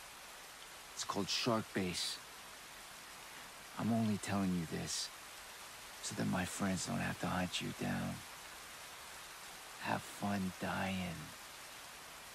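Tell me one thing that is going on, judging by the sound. A man speaks calmly and close by, in a low voice.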